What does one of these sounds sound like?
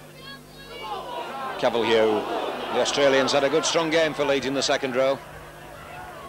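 A large crowd of spectators cheers and shouts.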